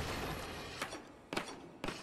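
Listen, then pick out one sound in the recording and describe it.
A skateboard grinds along a ledge.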